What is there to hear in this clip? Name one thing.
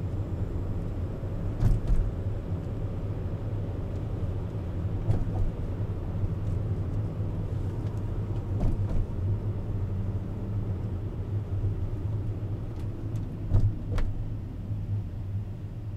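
A car drives over a bridge deck with a low road rumble, heard from inside the car.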